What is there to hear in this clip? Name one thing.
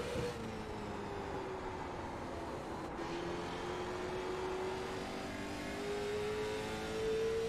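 A race car engine roars steadily, its pitch dipping and then rising as it shifts gear and speeds up.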